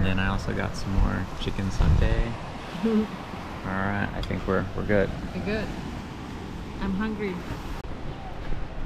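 A woman talks calmly and laughs close by.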